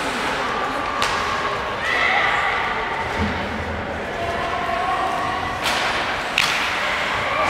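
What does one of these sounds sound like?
Hockey sticks clack sharply against a puck now and then.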